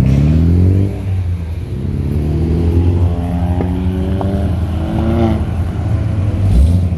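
A deep rumbling car engine revs repeatedly as the car drives off.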